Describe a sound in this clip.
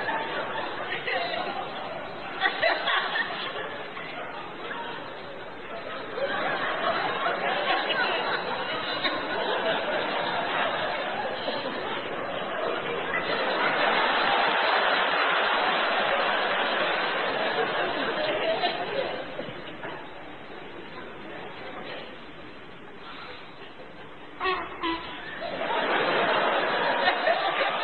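An audience cheers and laughs loudly in a large hall.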